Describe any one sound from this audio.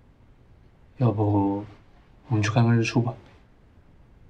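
A young man speaks quietly, close by.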